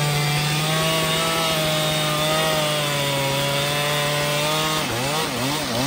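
A chainsaw engine roars steadily, cutting into a tree trunk.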